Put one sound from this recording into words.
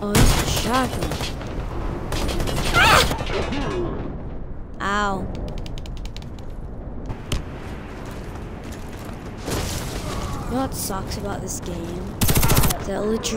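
Rapid bursts of gunfire crack out close by.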